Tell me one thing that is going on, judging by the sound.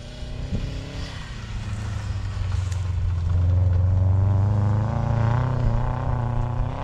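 A car engine roars and revs as it speeds across snow.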